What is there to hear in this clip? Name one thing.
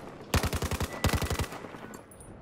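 A rifle fires a rapid burst at close range.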